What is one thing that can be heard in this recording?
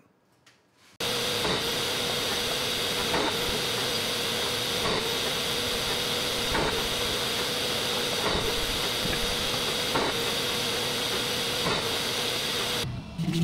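A small milling machine whirs steadily.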